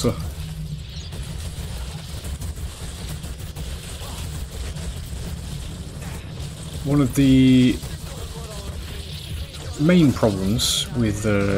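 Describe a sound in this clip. Energy weapons zap and crackle.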